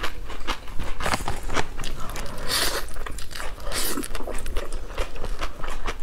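A young woman slurps noodles noisily, close to a microphone.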